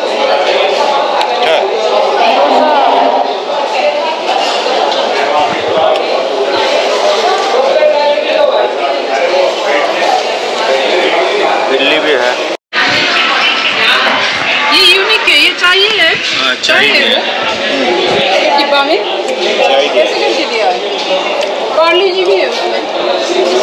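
Many people chatter and talk at once nearby, filling a busy room with voices.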